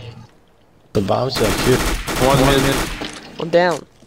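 A submachine gun fires a rapid burst close by.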